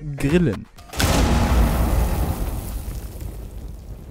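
A firebomb bursts into flames with a loud whoosh.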